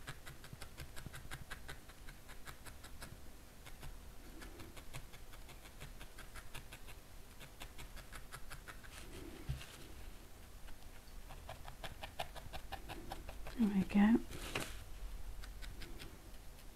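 A needle pokes rapidly into wool with soft, quick ticks.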